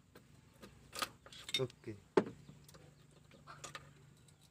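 Metal tools clink against an engine part.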